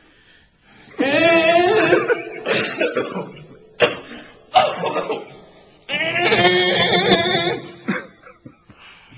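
A man sings loudly and passionately into a microphone through a loudspeaker.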